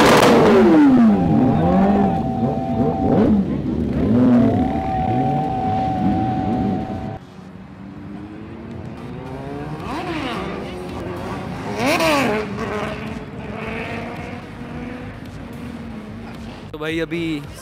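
Motorcycle engines rev and whine with rising and falling pitch.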